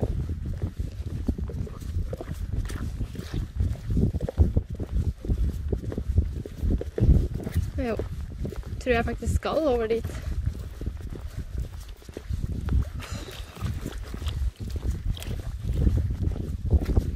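Wind gusts and rumbles against the microphone outdoors.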